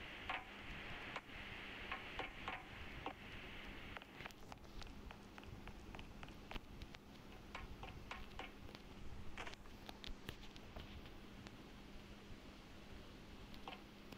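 Light footsteps tap quickly on a hard surface.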